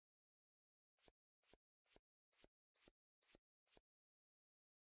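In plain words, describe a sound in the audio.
Cards flip over with soft, quick clicks.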